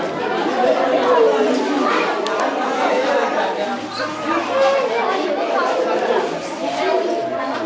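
A crowd of men and women sing together in a room.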